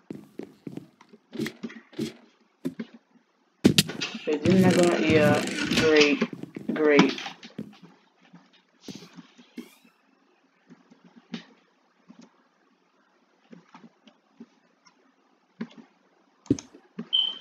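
Blocks are placed with short soft thuds.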